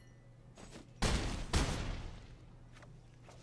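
Game sound effects whoosh and boom loudly.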